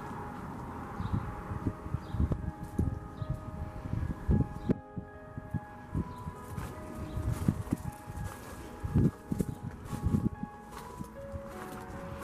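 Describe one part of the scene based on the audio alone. Wind gusts rumble in short bursts outdoors.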